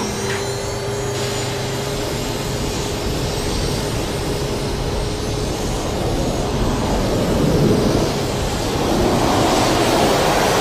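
A powerful jet of water hisses and sprays loudly.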